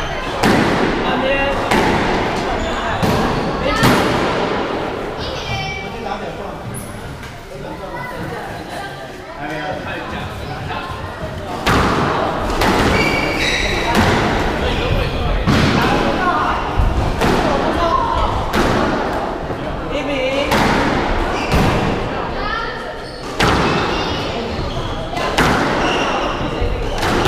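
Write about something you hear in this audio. A squash ball smacks hard against the walls and echoes in a large hall.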